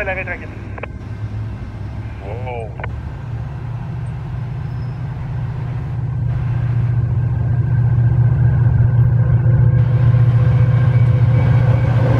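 A diesel locomotive approaches with a deep engine rumble that grows steadily louder.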